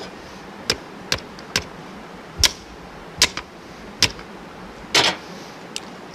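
A hammer strikes metal in sharp knocks.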